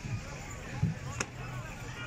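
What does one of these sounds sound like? A crowd shouts in the distance.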